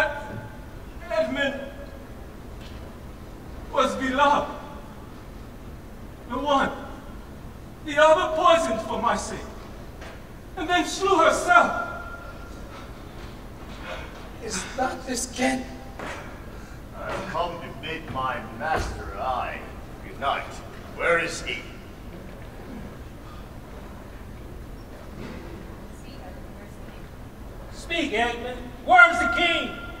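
A man speaks loudly and dramatically in a large echoing hall, heard in short bursts with pauses.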